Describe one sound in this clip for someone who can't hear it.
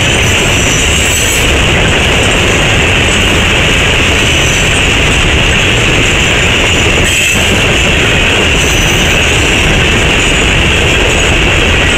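A freight train rumbles past close by, wheels clattering and squealing on the rails.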